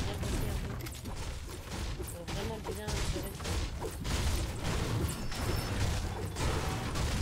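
Quick footsteps patter across a hard floor.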